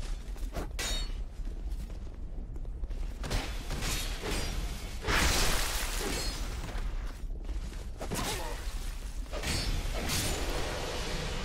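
Swords clash and strike armour in quick blows.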